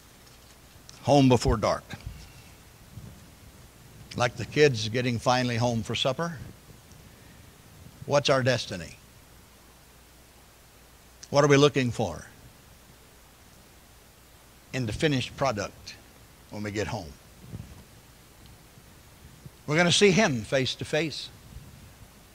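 An elderly man speaks calmly into a microphone, with long pauses between phrases.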